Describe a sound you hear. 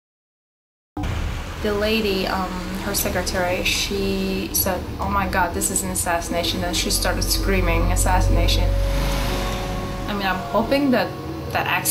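An older woman speaks with animation, close by.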